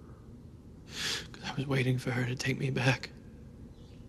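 A young man speaks quietly.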